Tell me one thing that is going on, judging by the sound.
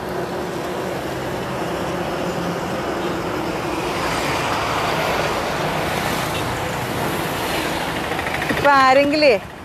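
Traffic rumbles along a road outdoors.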